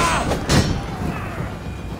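A sword strikes hard with a loud clash.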